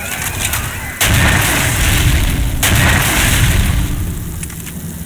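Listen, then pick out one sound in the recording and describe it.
A rocket launcher fires with a loud booming blast.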